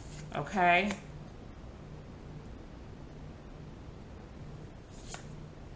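Playing cards rustle softly as a deck is handled.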